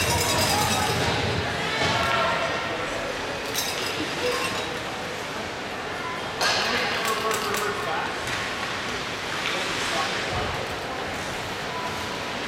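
Skates scrape across ice in a large echoing hall.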